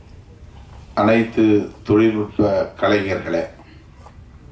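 A middle-aged man speaks slowly and firmly into a microphone, heard through loudspeakers.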